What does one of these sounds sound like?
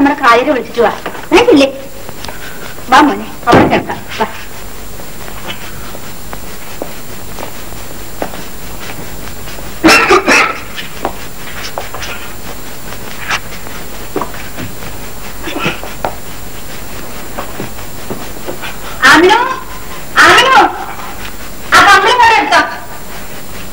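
A man speaks in short, agitated bursts.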